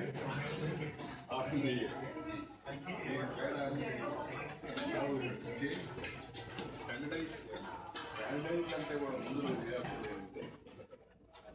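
A man speaks calmly to a group.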